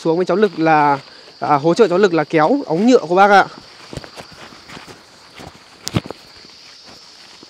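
Footsteps crunch on a grassy path.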